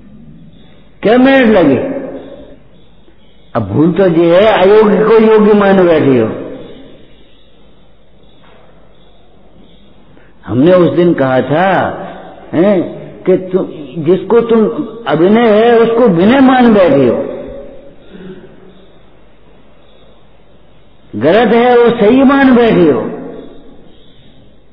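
An elderly man sings slowly into a microphone, in long drawn-out phrases.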